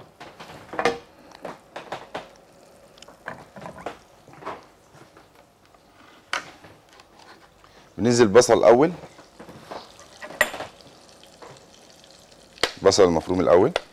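Butter sizzles gently in a hot frying pan.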